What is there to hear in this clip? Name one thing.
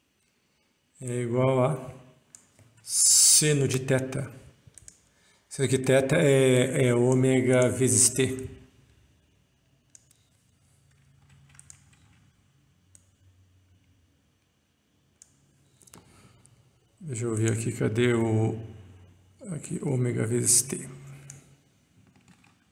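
A middle-aged man speaks calmly and closely into a microphone, explaining.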